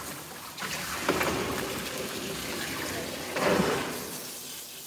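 A dog shakes its wet coat, spraying water.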